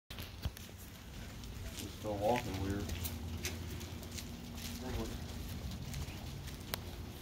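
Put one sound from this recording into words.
A dog's paws patter softly on pavement and grass.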